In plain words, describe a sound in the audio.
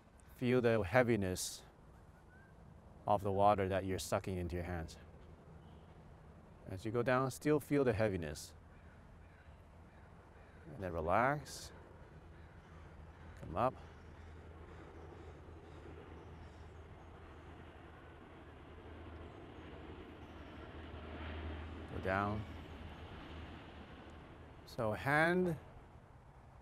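A young man speaks calmly in short phrases.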